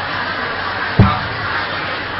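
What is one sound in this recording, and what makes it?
A microphone is bumped with a dull thud.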